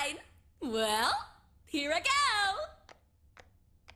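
A young woman speaks cheerfully with a lilting voice.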